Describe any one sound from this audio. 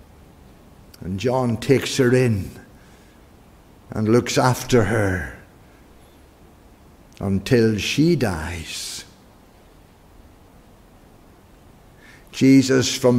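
An older man speaks with emphasis through a microphone, in short phrases with pauses.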